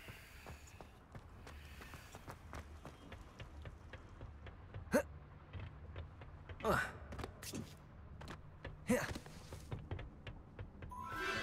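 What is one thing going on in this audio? Footsteps tap on stone in an echoing tunnel.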